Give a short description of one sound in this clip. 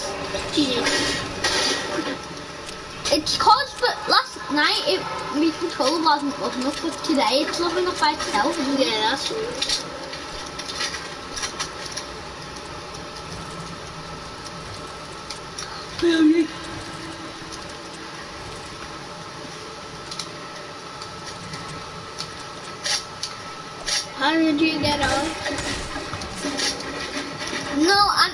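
A young boy talks with animation close to a microphone.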